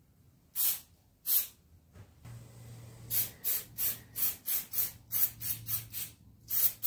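An aerosol can sprays in short, repeated hissing bursts.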